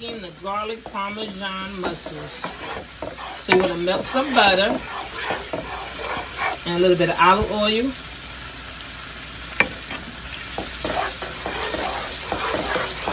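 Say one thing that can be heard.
Butter sizzles and crackles in a hot pan.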